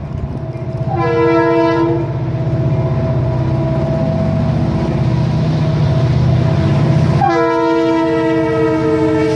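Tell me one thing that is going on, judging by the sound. A train horn blares in long blasts.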